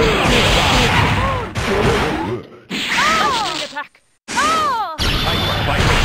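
Video game fighting sounds crash and whoosh with swooping electronic effects.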